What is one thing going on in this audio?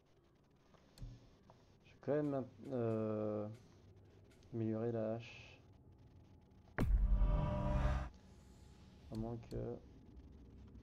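Game menu sounds chime and whoosh as selections change.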